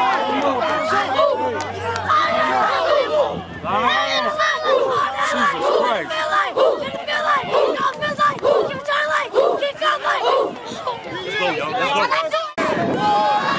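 A group of children shouts and chants together loudly outdoors.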